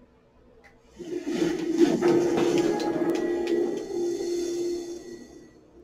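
A loud video game intro with a whooshing burst plays through a speaker.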